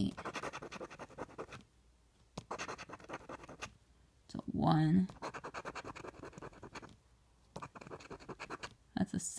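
A coin scratches quickly across a card in short bursts.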